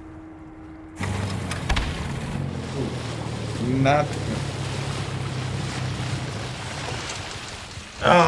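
An outboard motor starts and runs with a steady drone.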